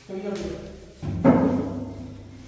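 A wooden panel knocks against the floor.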